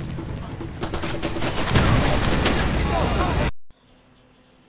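A rifle fires loud bursts of shots.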